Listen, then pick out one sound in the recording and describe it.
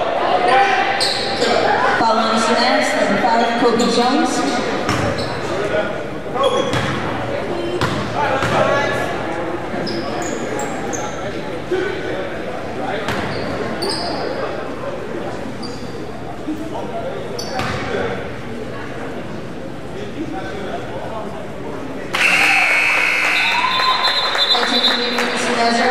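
A crowd of spectators murmurs in an echoing gym.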